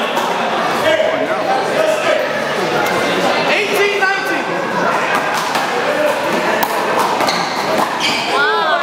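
A rubber ball smacks against a wall and floor, echoing in a large hall.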